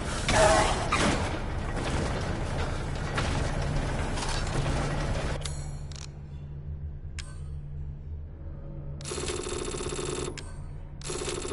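Low machinery hums steadily.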